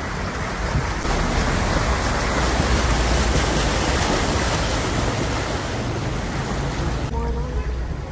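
Water splashes and rushes loudly against a moving car.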